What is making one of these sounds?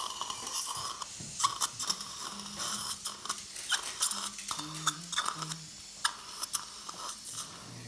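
A suction tube slurps and gurgles.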